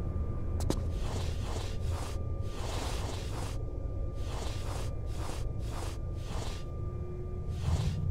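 Soft scuffing and shuffling sounds come as a figure climbs up and crawls along stone.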